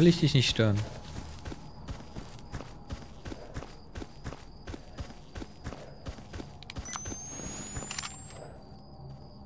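Footsteps tread steadily on the ground.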